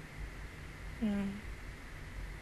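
A young woman makes a short hum close to a microphone.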